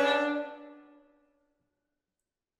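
Bowed strings play a final chord that rings out and fades in a reverberant room.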